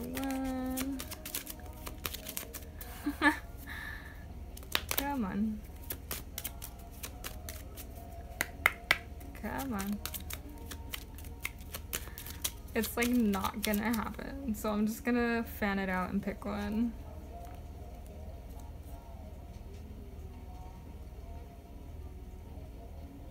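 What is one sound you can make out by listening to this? Playing cards rustle and flick as they are handled.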